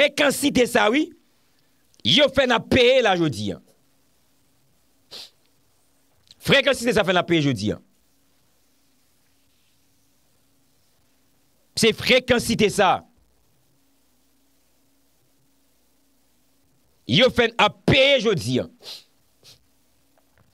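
A man speaks with animation into a close microphone, in short bursts with long pauses.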